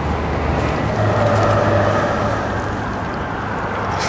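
Keys jingle.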